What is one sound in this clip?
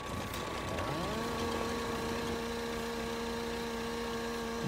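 A chainsaw runs with a steady drone.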